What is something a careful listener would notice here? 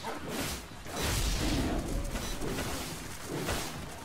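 Tigers snarl and growl as they fight.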